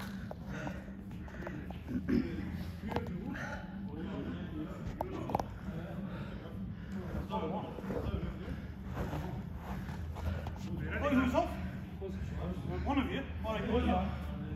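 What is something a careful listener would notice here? Men talk casually in a large echoing hall.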